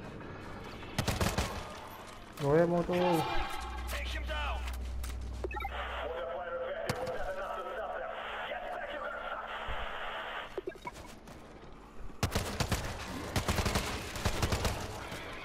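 A rifle fires in rapid bursts of loud, sharp shots.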